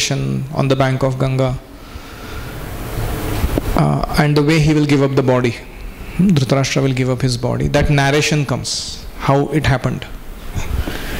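A man speaks calmly and clearly into a microphone, with pauses.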